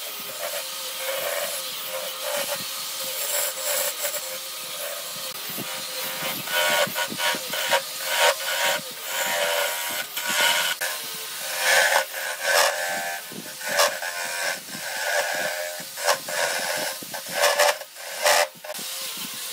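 A chisel scrapes and shaves wood on a spinning lathe.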